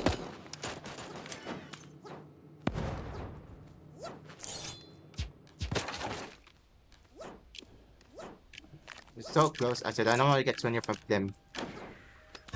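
Short sharp shots crack in quick succession.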